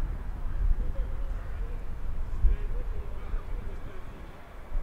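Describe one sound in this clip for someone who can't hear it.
Rugby players shout to each other far off across an open field.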